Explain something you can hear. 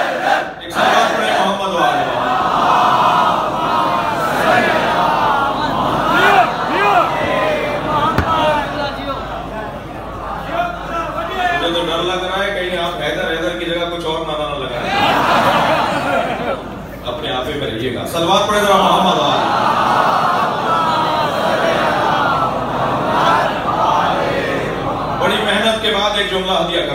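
A man speaks loudly and with passion into a microphone through loudspeakers, in an echoing hall.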